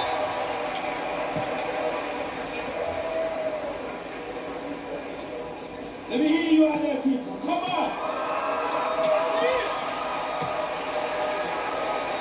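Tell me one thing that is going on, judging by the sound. A crowd cheers and murmurs steadily from a television's speakers.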